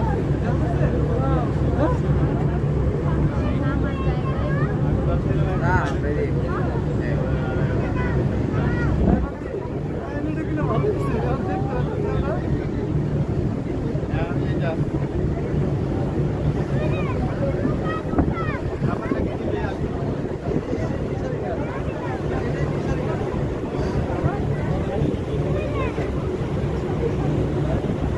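Wind blows across the deck.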